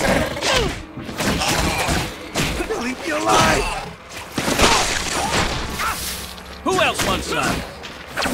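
Metallic blows clash repeatedly.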